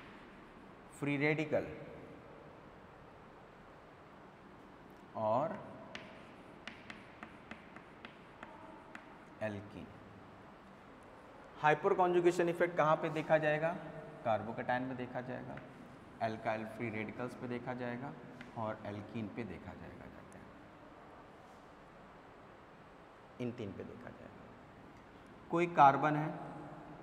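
A man speaks calmly and clearly, lecturing.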